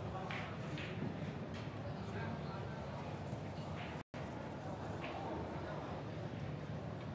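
Billiard balls click softly as they are set on the table.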